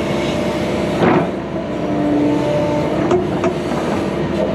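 Rocks clatter under an excavator bucket.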